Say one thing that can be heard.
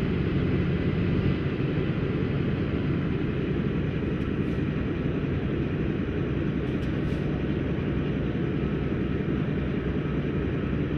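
Tyres roll steadily on a road.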